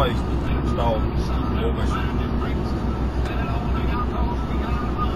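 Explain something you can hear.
A car engine hums and tyres rumble steadily on the road.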